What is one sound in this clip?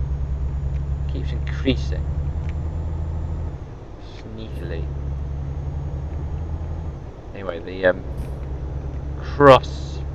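A truck engine drones at a low, steady pitch, easing off now and then.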